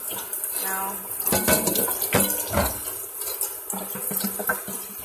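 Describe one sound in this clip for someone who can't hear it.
Water runs from a tap into a bowl.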